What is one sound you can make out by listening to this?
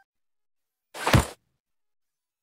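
A short whoosh sounds in a game.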